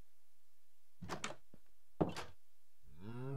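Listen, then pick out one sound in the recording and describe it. A wooden door opens and shuts with a knock.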